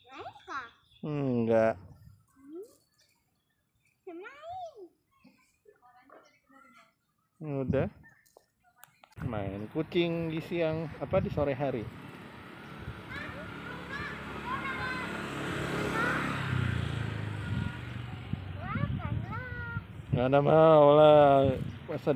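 A small child talks and squeals excitedly nearby.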